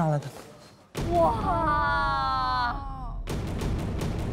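Another young woman speaks with animation.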